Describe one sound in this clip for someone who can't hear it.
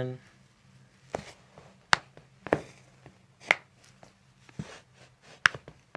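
Joints crack sharply in short pops.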